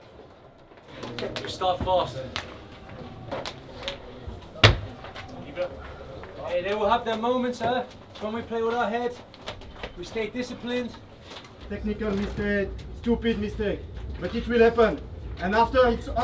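Men talk and murmur in a room.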